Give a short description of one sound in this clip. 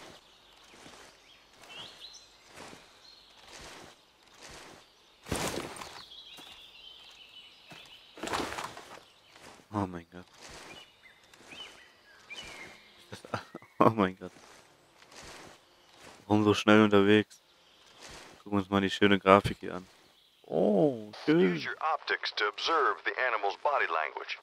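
Footsteps crunch steadily through grass and brush.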